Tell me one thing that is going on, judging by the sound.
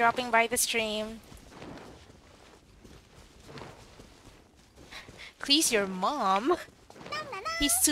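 Light footsteps run through tall grass.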